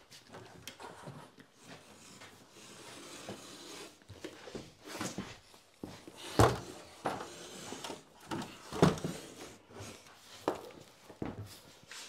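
A pencil scratches lines on a drywall board.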